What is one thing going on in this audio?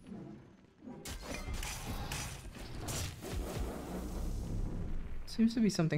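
Sword strikes and magic blasts crash and crackle in a video game fight.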